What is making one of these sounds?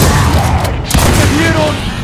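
Gunfire rattles loudly.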